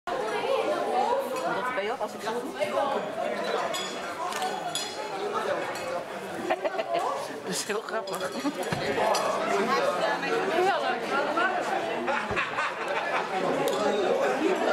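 A crowd of men and women chatter and call out in a large echoing hall.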